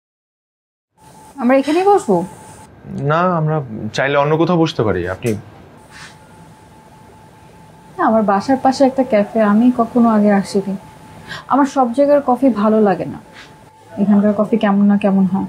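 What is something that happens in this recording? A young woman speaks quietly up close.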